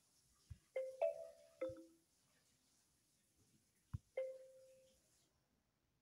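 Short chime tones from a word game ring as letters are selected.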